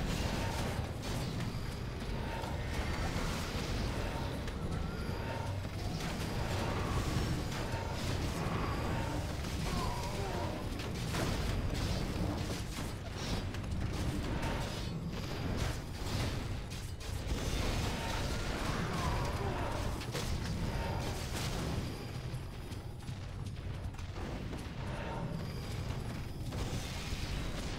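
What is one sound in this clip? Weapons clash repeatedly in a game battle.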